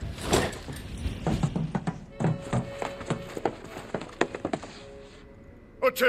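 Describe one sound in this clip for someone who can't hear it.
Boots tramp across a hard floor.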